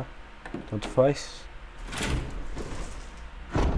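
Heavy wooden doors creak open.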